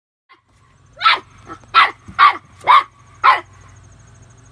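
A puppy barks sharply several times.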